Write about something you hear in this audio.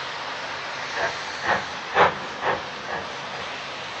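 A steam locomotive's exhaust gives a few loud, sharp blasts.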